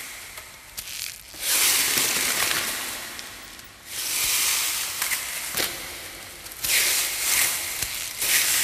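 A broom sweeps the ground in long, scratchy strokes.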